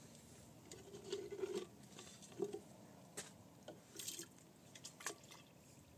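Water sloshes inside a plastic can.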